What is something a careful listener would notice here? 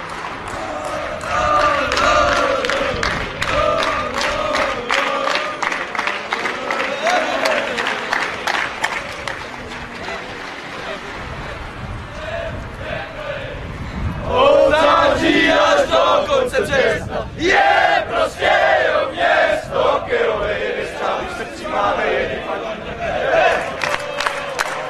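A crowd of young men chants loudly outdoors.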